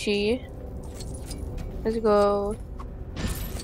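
Electronic chimes ring out as coins are collected.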